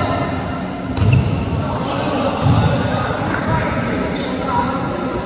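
A volleyball is struck sharply in a large echoing hall.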